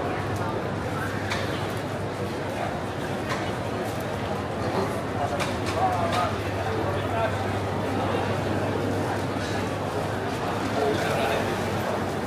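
A crowd of people chatters all around under a large echoing roof.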